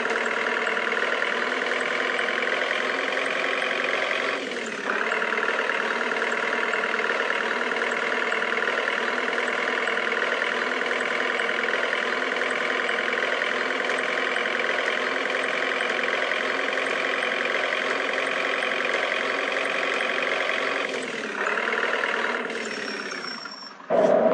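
A van engine drones steadily, dipping briefly as gears shift.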